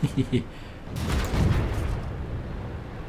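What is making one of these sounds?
A loud explosion booms and crackles.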